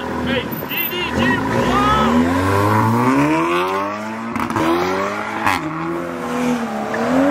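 A car engine revs hard as the car pulls away outdoors.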